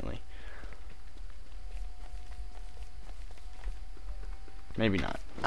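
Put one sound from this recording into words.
Footsteps patter softly on the ground.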